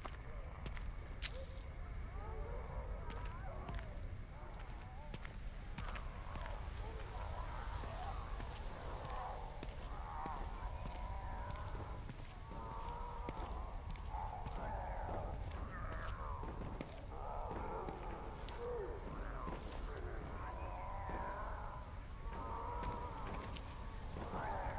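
Slow footsteps squelch softly on wet ground.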